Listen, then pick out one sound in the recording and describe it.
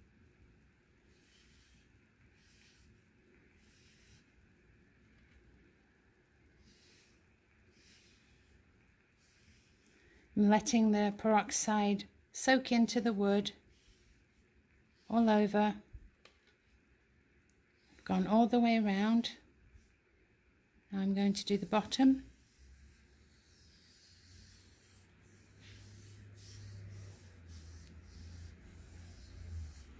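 A cloth rubs softly against a wooden bowl.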